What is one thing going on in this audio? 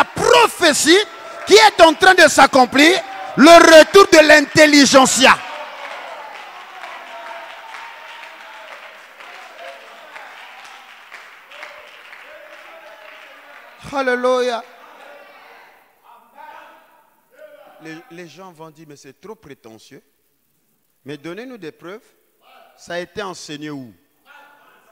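A man preaches loudly and forcefully into a microphone in an echoing hall.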